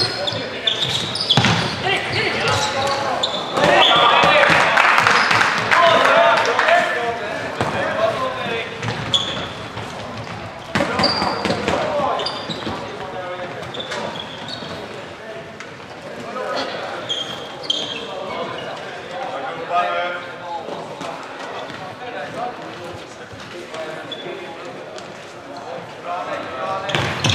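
Shoes squeak sharply on the hall floor.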